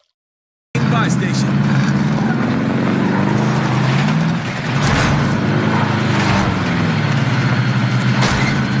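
A vehicle engine drones steadily as it drives.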